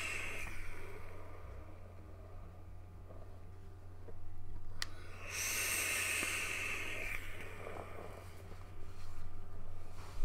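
A man exhales a long breath.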